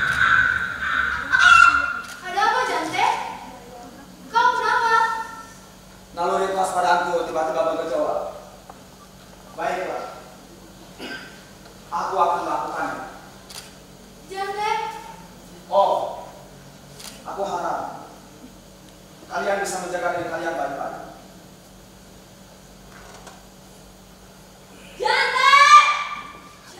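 A young woman declaims verse with emotion, heard from a distance in a reverberant hall.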